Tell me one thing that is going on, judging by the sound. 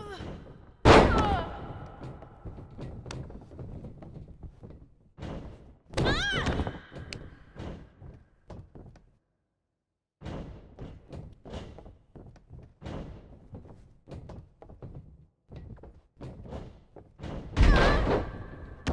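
Bodies slam heavily onto a wrestling ring mat with loud thuds.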